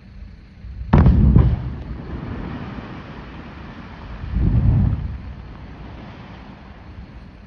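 Distant blasts boom and rumble, echoing off the slopes.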